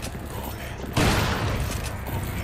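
A shotgun fires a loud, booming blast that echoes.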